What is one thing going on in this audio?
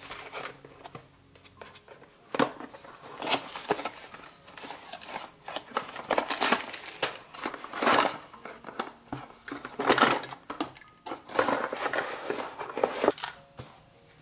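Cardboard packaging rustles and scrapes as hands open a box.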